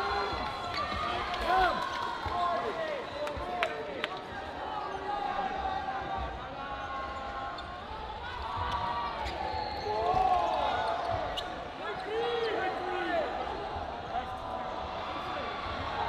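Balls bounce on a wooden floor.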